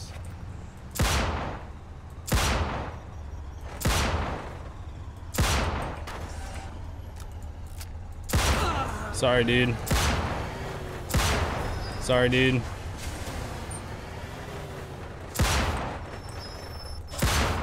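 Gunshots ring out loudly, one at a time, with a booming echo.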